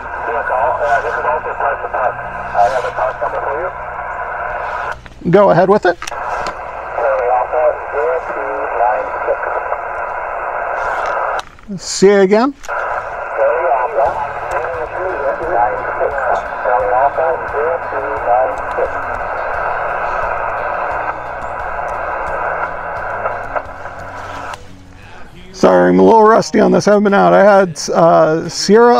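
Voices crackle through a two-way radio loudspeaker.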